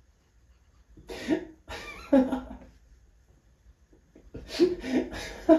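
A young woman squeals and laughs close by in short bursts.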